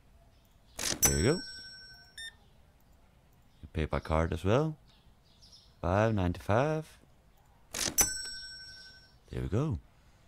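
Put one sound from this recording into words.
A card payment terminal beeps with a bright electronic chime.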